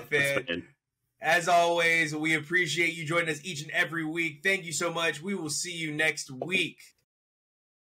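A man talks with animation over a headset microphone.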